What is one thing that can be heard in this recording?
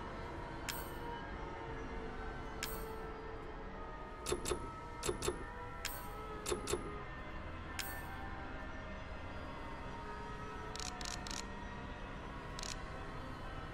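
Short soft clicks sound as menu options are switched.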